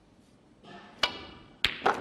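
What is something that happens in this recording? A cue taps the cue ball.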